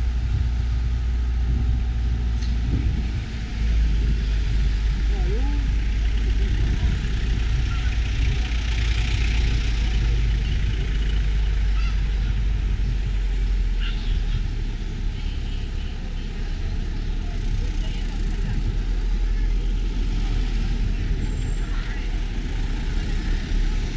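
A car engine runs low as traffic creeps along.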